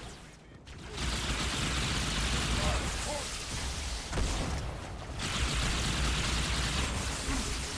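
Plasma blasts explode with loud hissing roars.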